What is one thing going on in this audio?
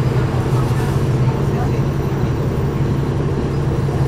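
A truck passes by in the other direction.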